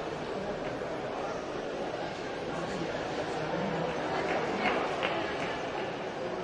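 A crowd chatters in an echoing indoor hall.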